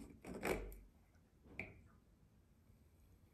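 A plastic cap clicks onto a pipe fitting.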